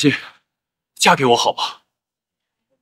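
A young man speaks with surprise close by.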